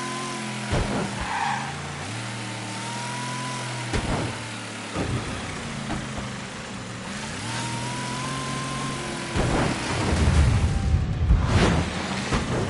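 A car engine hums steadily, rising and falling in pitch as the car accelerates and shifts gears.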